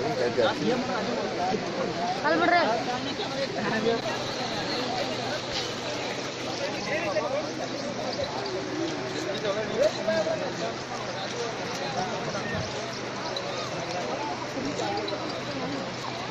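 A crowd of men talks and calls out nearby, outdoors.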